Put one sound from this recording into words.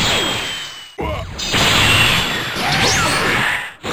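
An energy blast fires with a loud rushing surge.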